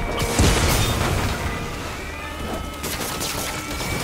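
Energy blasts crackle and whoosh.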